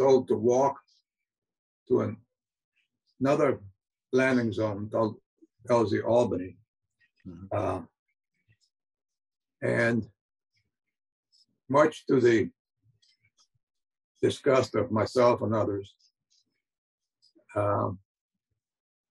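An elderly man speaks calmly in bursts with pauses, heard through an online call.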